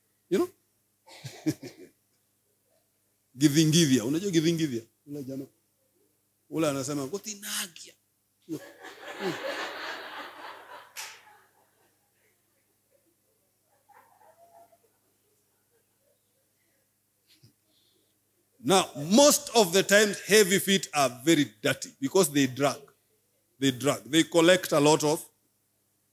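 A man preaches with animation into a microphone, heard through a loudspeaker, with long pauses.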